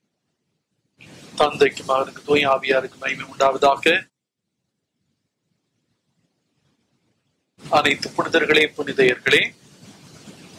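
An elderly man speaks calmly and solemnly through a microphone in an echoing hall.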